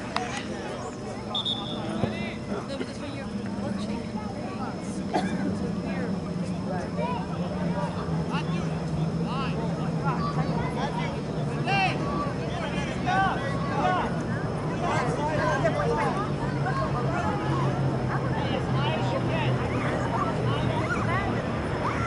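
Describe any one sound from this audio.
Young men call out to each other across an open field, some way off.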